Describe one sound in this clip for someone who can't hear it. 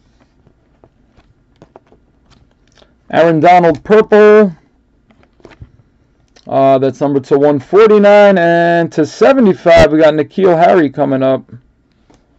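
Trading cards slide against each other as they are flipped.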